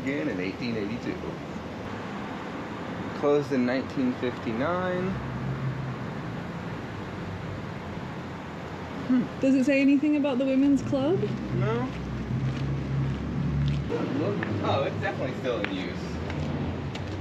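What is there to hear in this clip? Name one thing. A man speaks casually close by.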